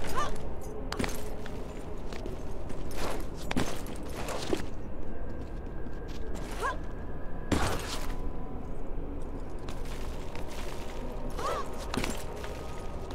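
Soft thuds sound as a climber grabs and lands on stone ledges.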